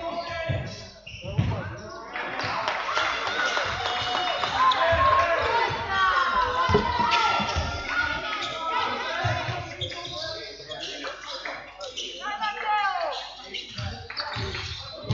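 A basketball bounces with dull thuds on the floor.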